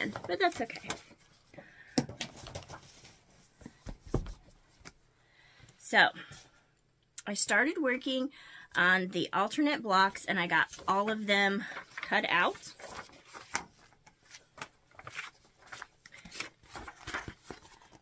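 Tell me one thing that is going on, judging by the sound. Paper rustles and crinkles as pages are handled.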